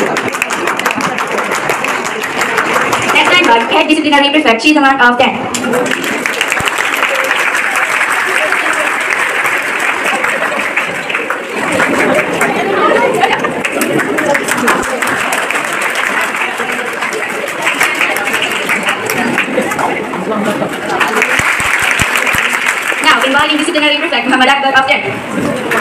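An audience claps steadily.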